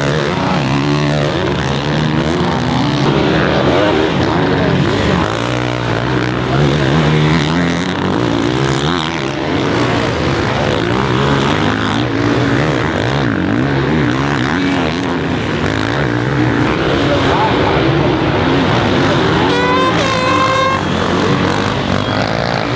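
Motocross bike engines rev and whine loudly, rising and falling in pitch.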